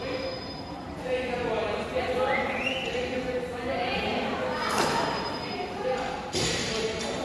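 A man speaks to the children, calling out instructions.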